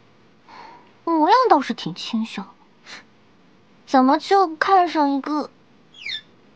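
A young woman speaks with a teasing tone, close by.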